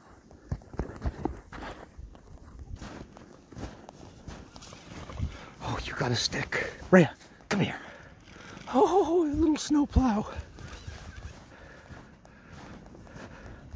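A dog's paws crunch through snow.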